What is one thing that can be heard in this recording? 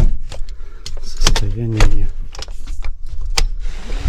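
A hand bumps and scrapes against a plastic panel.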